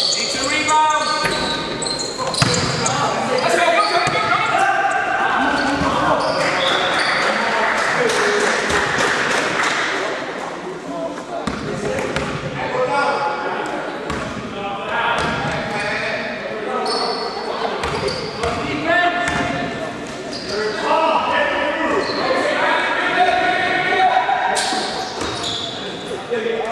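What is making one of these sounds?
Voices of young men call out and chatter across a large echoing hall.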